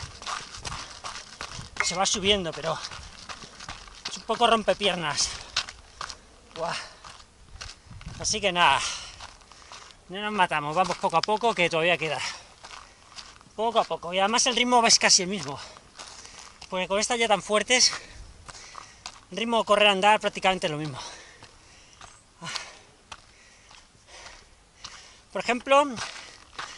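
Running feet crunch on a dirt trail.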